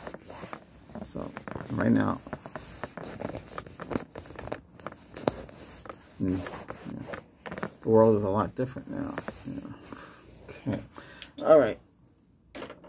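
A middle-aged man speaks softly and close to the microphone.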